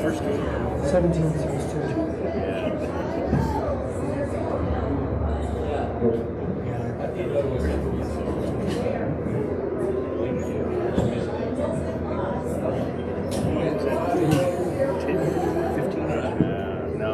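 A racquetball smacks against the walls, echoing in a large hard court.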